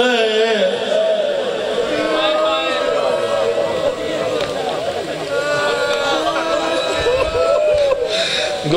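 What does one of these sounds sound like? A man recites in a loud, chanting voice through a microphone and loudspeakers.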